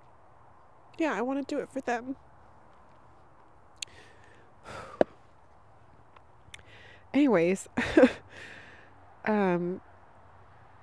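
A young woman speaks softly and close into a microphone.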